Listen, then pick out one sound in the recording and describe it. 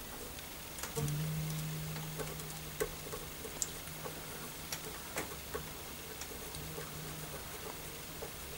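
A guitar string hums with a low, steady tone that slowly fades.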